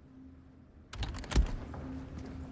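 A man's footsteps thud on a stone floor.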